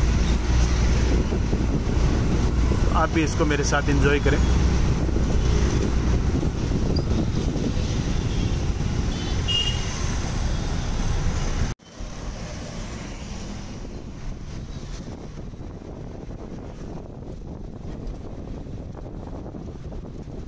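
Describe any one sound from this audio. Wind rushes past an open bus window.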